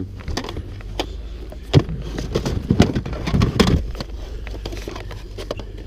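Plastic game cartridges clack and knock against each other.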